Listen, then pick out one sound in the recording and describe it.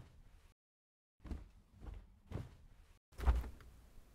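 A refrigerator door opens with a soft thud.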